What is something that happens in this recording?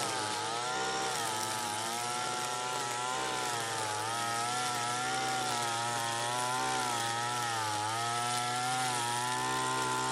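A string trimmer's engine whines steadily nearby, rising and falling in pitch as it cuts grass.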